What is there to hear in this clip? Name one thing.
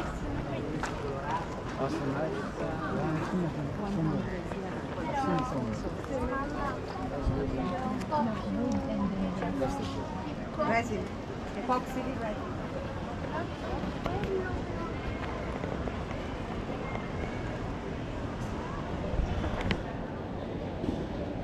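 Many men and women chatter nearby outdoors.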